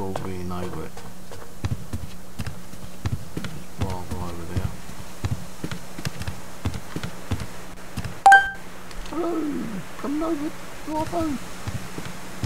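A man talks into a close microphone in short, animated bursts.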